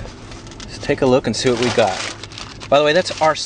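A paper bag rustles.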